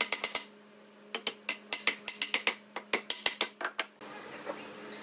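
A hand taps quickly on wood.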